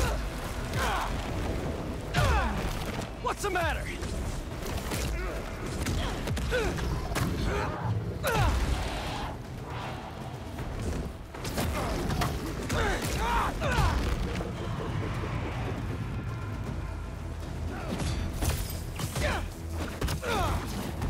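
Blows thud and crack in a fast fight.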